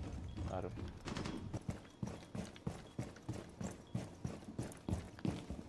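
Footsteps tap steadily across a hard floor.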